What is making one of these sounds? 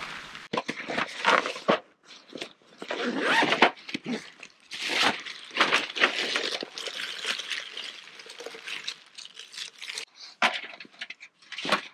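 A bag's contents rustle and clink as they are unpacked.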